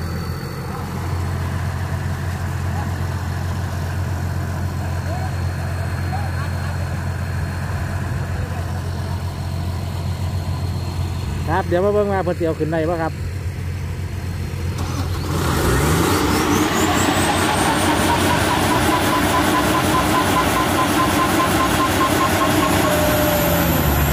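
A diesel engine rumbles steadily and revs louder.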